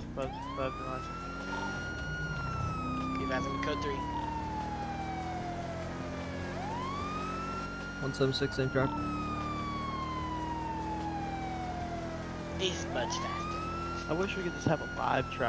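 A police siren wails, rising and falling in long sweeps.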